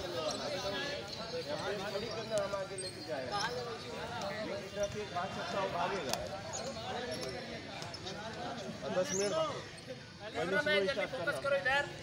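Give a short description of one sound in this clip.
A young man speaks to a group, giving instructions.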